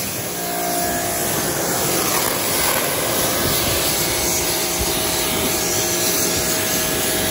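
A pressure washer sprays water in a steady, hissing jet.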